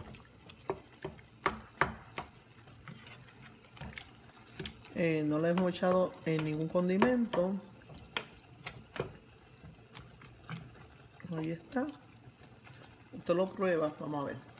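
A wooden spoon scrapes and taps against a pot while stirring a thick sauce.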